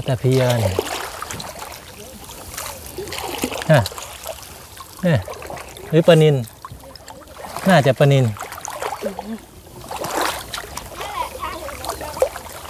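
A woman speaks with animation close by, outdoors.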